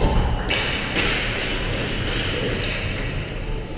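Hockey sticks clatter against the ice.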